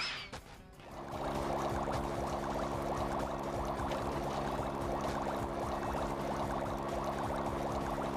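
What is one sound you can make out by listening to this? Upbeat game music plays steadily.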